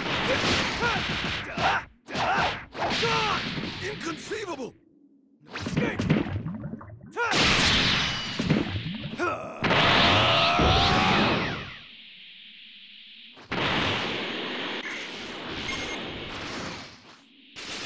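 Energy blasts whoosh and explode.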